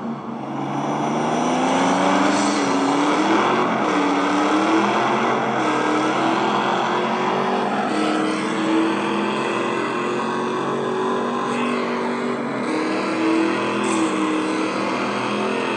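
A racing car engine roars and revs at high speed.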